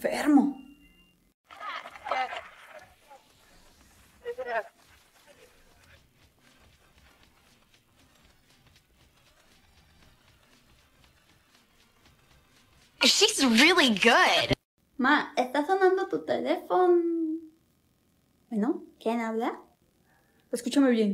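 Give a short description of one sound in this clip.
A young woman speaks with animation, close to a microphone.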